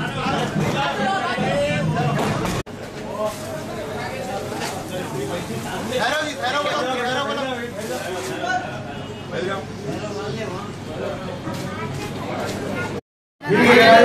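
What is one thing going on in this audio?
A crowd of men talk and murmur close by indoors.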